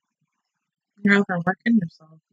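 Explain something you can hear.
A young woman speaks loudly and close by.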